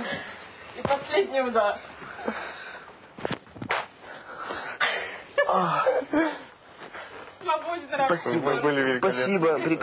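A young man laughs hard nearby.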